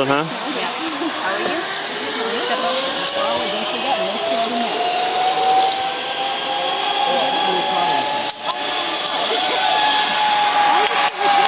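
A trolley whirs along a cable, rising in pitch and holding steady.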